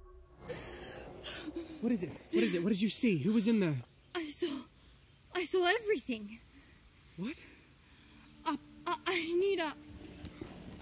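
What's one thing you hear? A young woman speaks anxiously close by.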